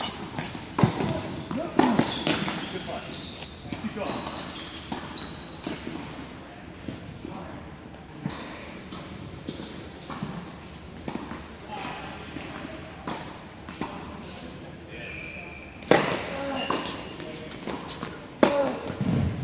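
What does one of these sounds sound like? Tennis rackets strike a ball with sharp pops that echo through a large hall.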